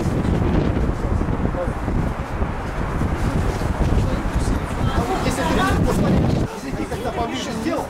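A group of women and men talk quietly nearby.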